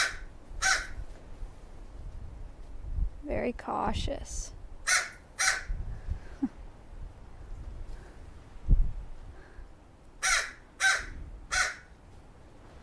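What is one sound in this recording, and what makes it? A crow caws loudly nearby in short harsh bursts.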